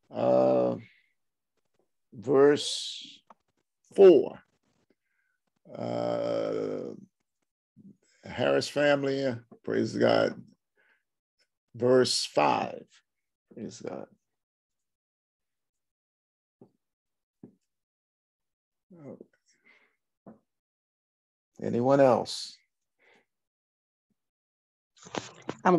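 An elderly man speaks calmly into a nearby microphone, with pauses.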